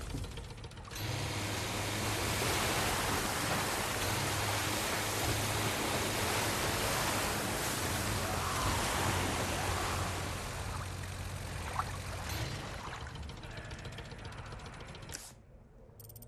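Water splashes and churns behind a boat.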